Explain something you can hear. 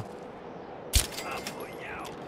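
A weapon strikes a body with a sudden thud.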